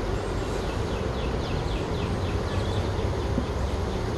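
A wooden frame scrapes as it slides into a hive box.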